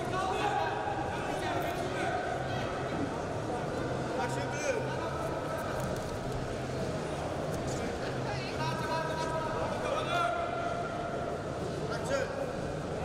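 Wrestlers scuffle and thump on a padded mat.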